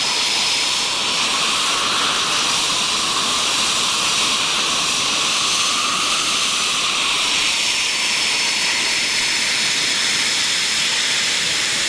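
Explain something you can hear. A jet engine whines loudly and steadily at idle close by.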